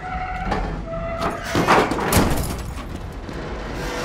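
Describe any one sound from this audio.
Heavy metal crashes and clangs as a car falls.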